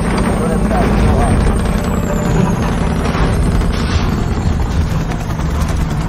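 A vehicle engine rumbles steadily as it drives.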